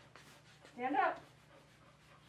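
A dog whines briefly.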